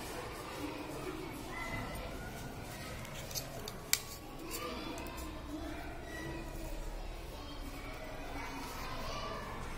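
Fingers fiddle with a small device, making faint clicks.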